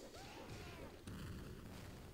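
A burst of fire explodes with a rumbling roar.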